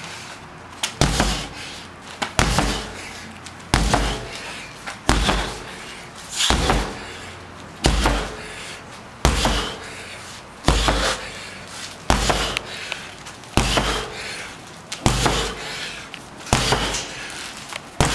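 A sledgehammer strikes a large rubber tyre with heavy, regular thuds.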